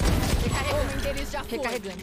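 Gunshots crack from a video game.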